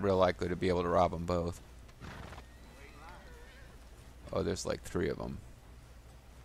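A man speaks gruffly, close by.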